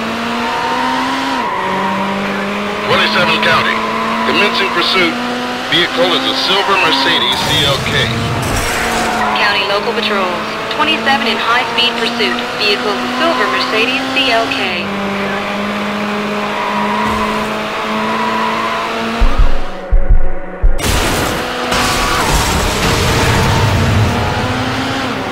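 A race car engine roars steadily, its pitch rising and dropping with each gear change.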